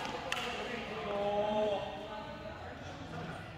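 Players call out to each other in a large echoing hall.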